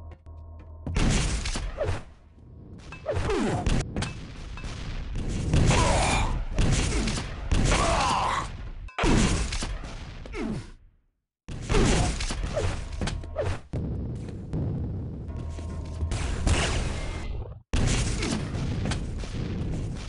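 Video game gunfire and blasts ring out loudly and rapidly.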